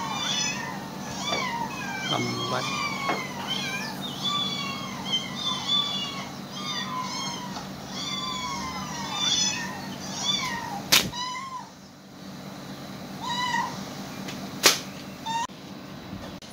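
Cats meow repeatedly in high, wavering cries.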